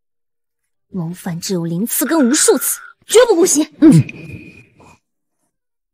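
A young woman speaks firmly and sharply nearby.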